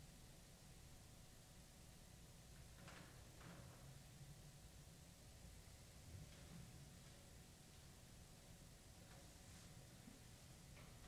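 A cello plays softly.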